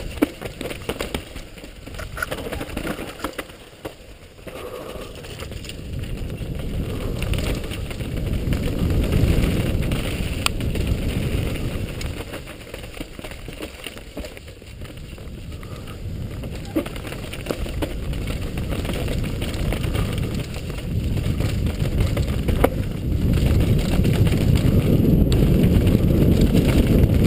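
A mountain bike rattles and clatters down a rough dirt trail.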